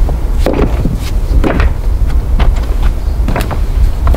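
Footsteps crunch over loose rocks.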